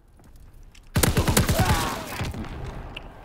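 A loud game sound effect plays as a round ends.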